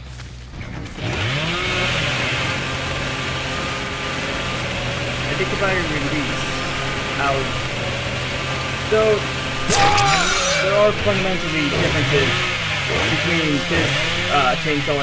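A chainsaw engine roars and revs loudly.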